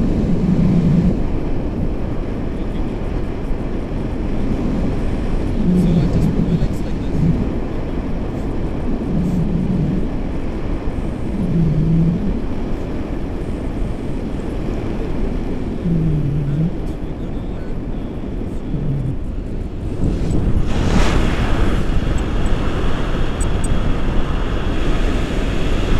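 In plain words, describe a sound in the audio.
Wind roars steadily against a microphone outdoors.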